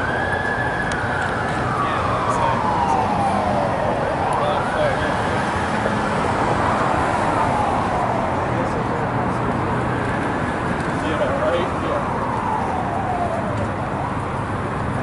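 An emergency siren wails nearby, rising and falling, then fades into the distance.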